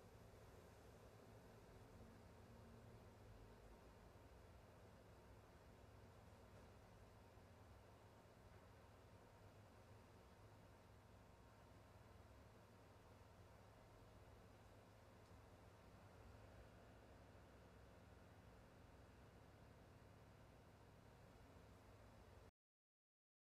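A string quartet plays softly.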